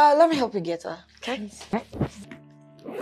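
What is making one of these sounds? A young woman speaks playfully close by.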